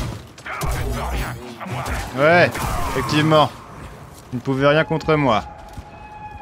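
A lightsaber hums and swooshes through quick swings.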